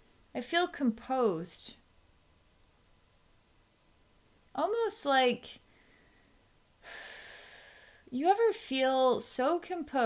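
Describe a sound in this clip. A woman speaks calmly and softly into a close microphone, with pauses.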